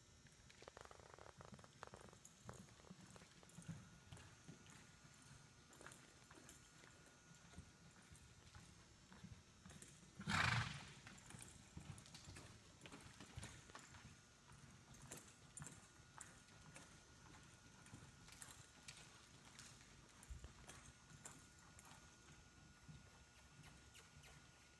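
A horse's hooves thud softly on soft dirt at a lope.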